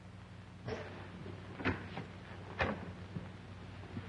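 A door latch clicks as a door swings open.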